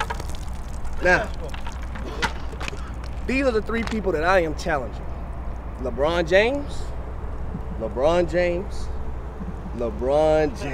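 A young man talks calmly and close by, outdoors.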